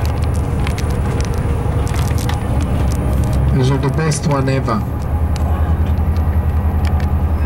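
A car engine hums steadily close by.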